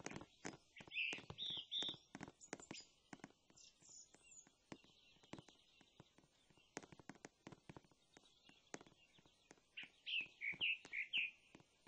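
Footsteps crunch quickly on snow.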